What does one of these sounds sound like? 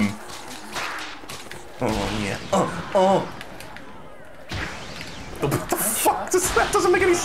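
Cartoon game sound effects pop and whoosh as a ball is struck back and forth.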